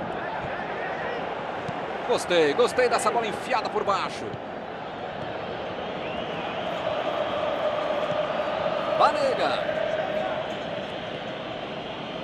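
A stadium crowd roars steadily, swelling a little midway.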